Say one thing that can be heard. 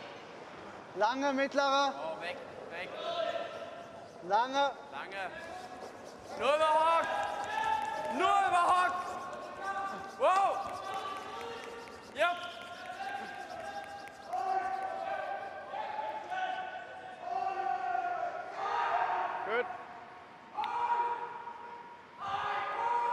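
Young men shout loud calls across the ice.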